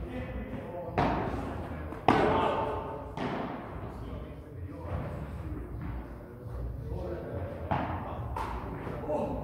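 A padel ball is struck by rackets with sharp pops that echo in a large hall.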